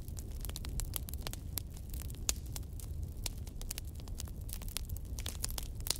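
Flames roar softly with a low rumble.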